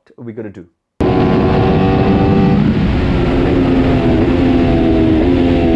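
Wind rushes past a speeding motorcycle.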